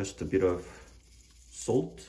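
Salt shakes from a shaker into a metal bowl.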